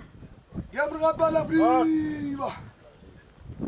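A woman sings out a loud, wavering high call nearby.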